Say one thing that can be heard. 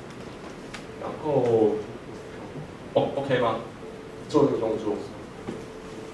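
A young man speaks calmly into a microphone in short bursts.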